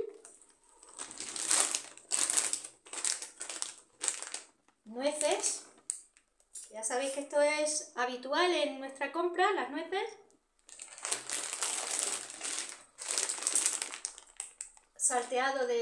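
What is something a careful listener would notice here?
A plastic bag crinkles loudly as it is handled.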